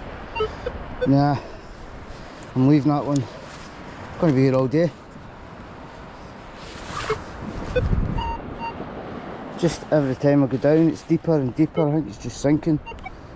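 A metal detector gives warbling electronic tones as it sweeps over the ground.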